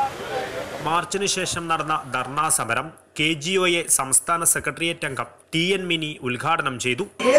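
A woman speaks steadily into a microphone through a loudspeaker.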